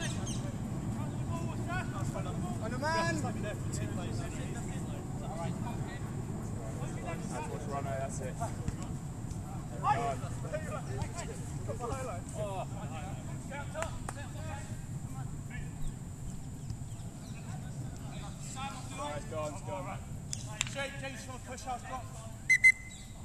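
Men shout to each other across an open pitch outdoors.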